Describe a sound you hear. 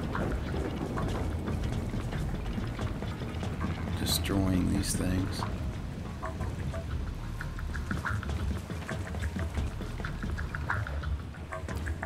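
Footsteps clang on metal stairs and grating.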